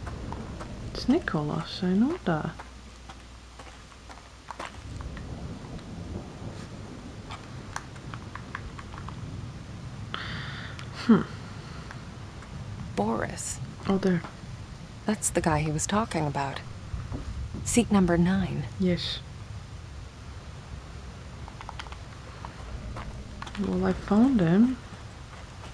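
A young woman talks into a close microphone with animation, in short bursts.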